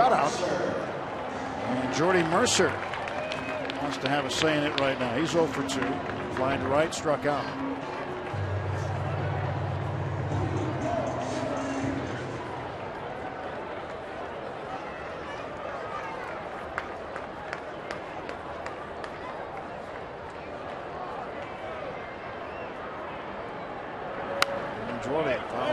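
A large stadium crowd murmurs in the open air.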